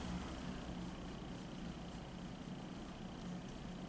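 A metal tool taps and scrapes lightly on a fingernail.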